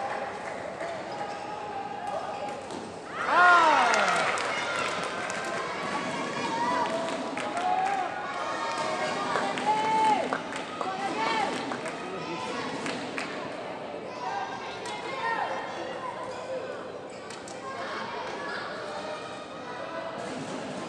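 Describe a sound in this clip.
Spectators murmur and chatter in a large echoing hall.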